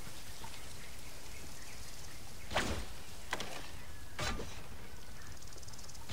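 Leaves and grass rustle as someone moves through bushes.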